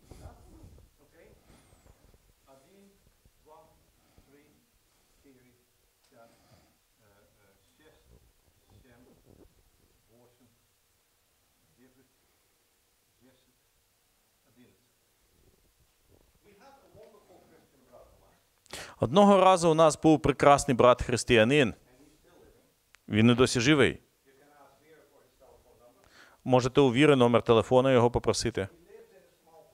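An elderly man speaks, quietly at first and then loudly and with animation.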